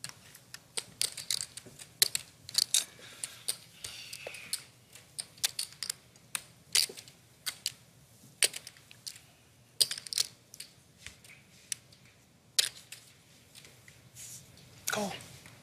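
Poker chips click and clack together in quick bursts.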